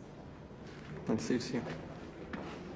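Another young man answers calmly nearby.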